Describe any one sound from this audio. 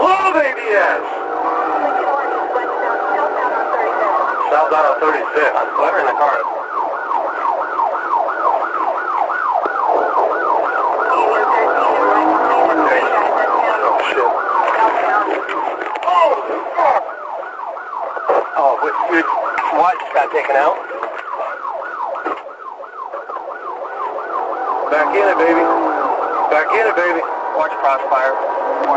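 A police car siren wails up and down.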